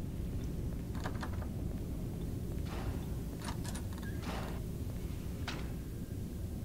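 A door handle clicks.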